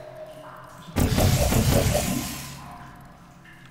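A sci-fi energy gun fires with a loud whooshing zap.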